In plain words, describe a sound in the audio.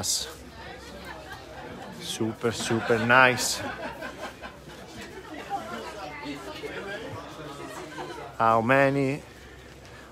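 Men and women chat at nearby tables in a low murmur.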